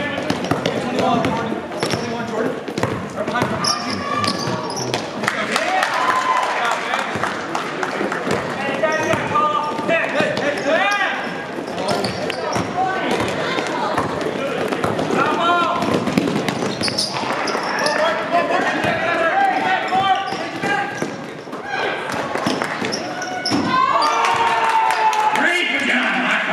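Spectators and players shout and call out across a large echoing gym.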